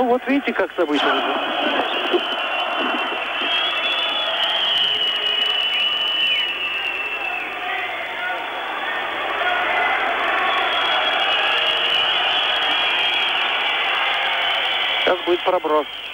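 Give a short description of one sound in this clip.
A large crowd roars in an echoing arena.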